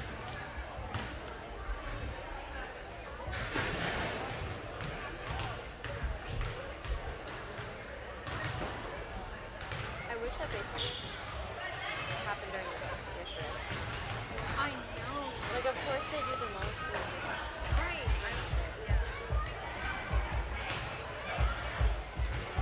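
Basketballs bounce with dull thuds on a wooden floor in a large echoing gym.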